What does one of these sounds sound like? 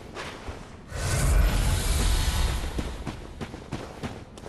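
A burst of flame roars briefly.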